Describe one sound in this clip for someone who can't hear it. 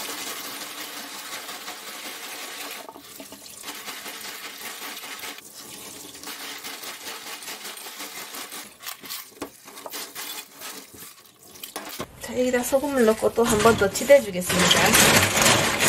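Clams clatter against each other as they are scrubbed by hand.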